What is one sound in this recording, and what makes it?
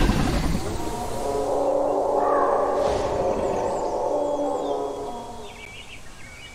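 A large creature lets out a long, low moan.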